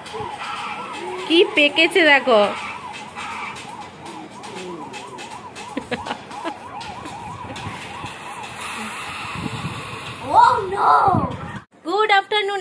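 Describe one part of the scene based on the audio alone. A cartoon tune with singing plays from a small phone speaker.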